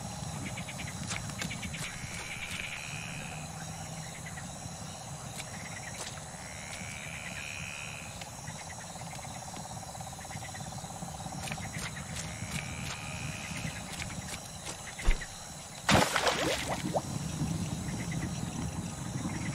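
Footsteps rustle through tall grass and reeds.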